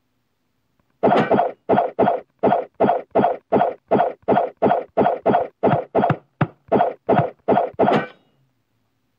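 A sword swishes in quick repeated slashes.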